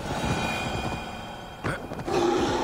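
A horse's hooves thud on soft ground.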